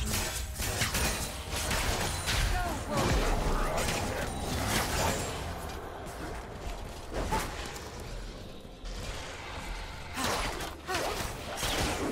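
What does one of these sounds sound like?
Game spells and attacks burst and clash in quick succession.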